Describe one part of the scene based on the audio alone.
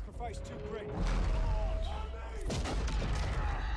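A tank cannon fires with a deep, rumbling boom.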